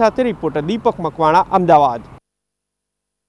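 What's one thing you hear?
A man speaks clearly and steadily into a microphone close by.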